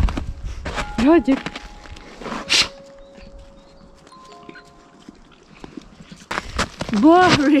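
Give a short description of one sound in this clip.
A puppy yelps and whines close by.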